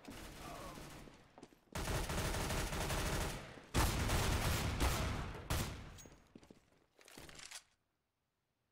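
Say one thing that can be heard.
Rapid gunfire rattles loudly and close.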